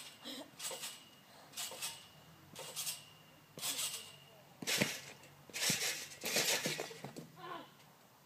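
A trampoline creaks and thumps as children bounce on it.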